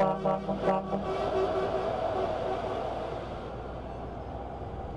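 Another truck rushes past close by with a rising and fading whoosh.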